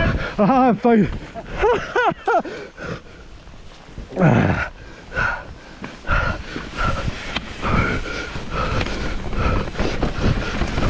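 Bicycle tyres rumble and crunch over a bumpy dirt trail.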